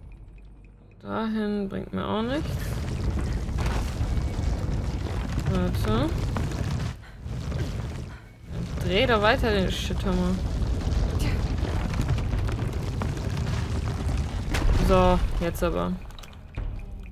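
A woman speaks into a close microphone with animation.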